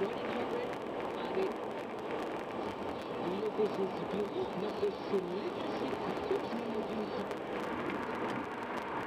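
Tyres roar steadily on a highway as a car drives along.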